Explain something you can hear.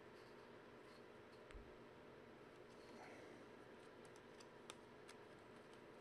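Playing cards slide and tap against each other as they are shuffled.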